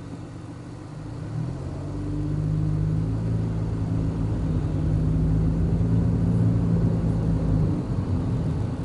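A car engine rises in pitch as the car speeds up, then settles.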